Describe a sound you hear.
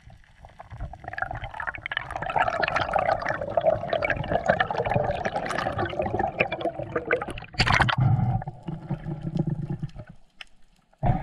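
Bubbles gurgle and rush past underwater.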